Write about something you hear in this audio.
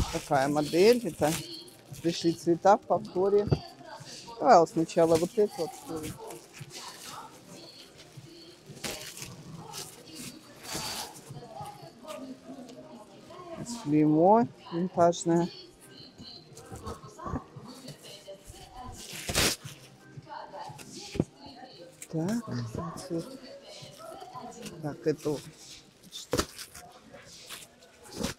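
Plastic wrapping rustles and crinkles as bags are handled.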